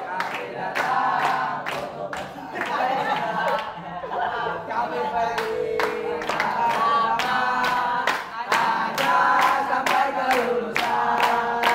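A crowd of boys claps hands in a steady rhythm.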